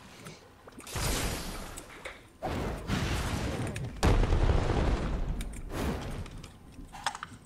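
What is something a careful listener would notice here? Explosions burst loudly in short, roaring blasts.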